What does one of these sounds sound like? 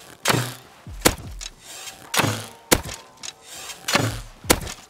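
A bowstring snaps as an arrow is loosed with a sharp twang.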